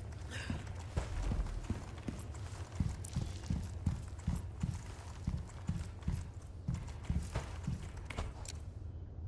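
Footsteps thud on a floor indoors.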